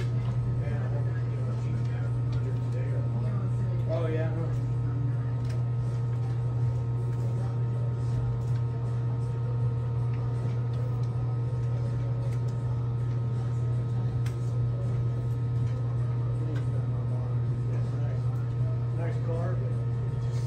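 A small turntable motor hums steadily.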